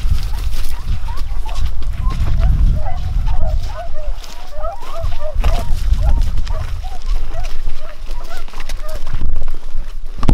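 Footsteps rustle through tall dry brush.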